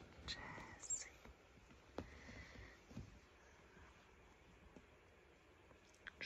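A hand strokes a cat's fur with a soft rustle.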